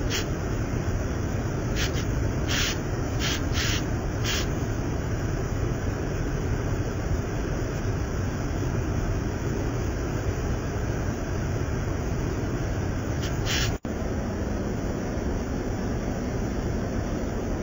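Floodwater rushes and roars loudly, close by.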